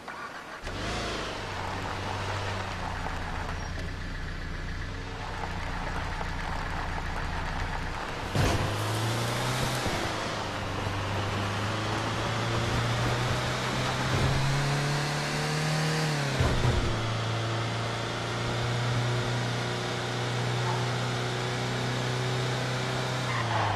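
A truck engine hums and revs as the truck drives.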